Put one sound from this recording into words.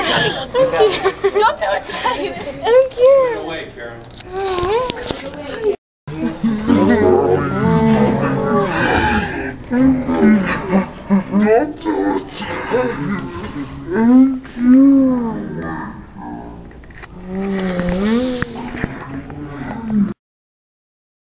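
Young girls talk excitedly close by.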